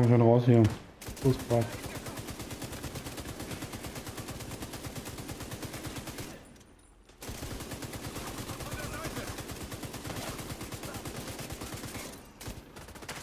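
Automatic gunfire rattles in rapid, steady bursts.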